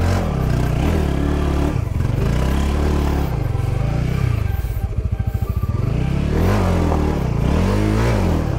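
A motorbike engine revs and labours up a rough slope.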